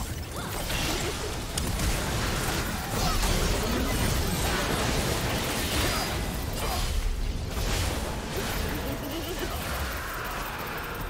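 Magic spells whoosh and burst in a lively fight.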